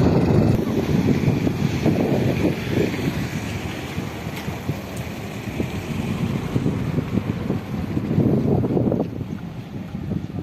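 Wind buffets the microphone outdoors.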